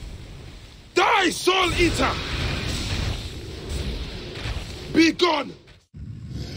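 A giant serpent roars loudly.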